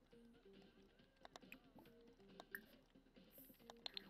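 Keys clatter softly on a computer keyboard.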